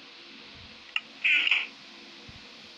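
A wooden chest lid creaks and thumps shut.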